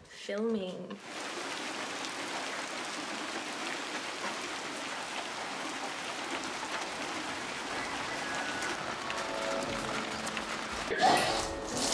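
Rain patters steadily on the ground outdoors.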